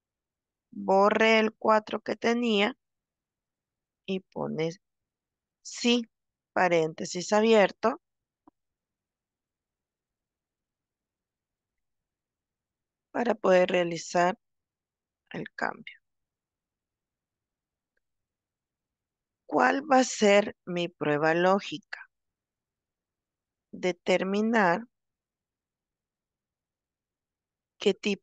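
A woman speaks calmly over an online call, with pauses.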